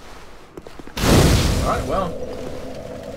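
A fire ignites with a loud whoosh.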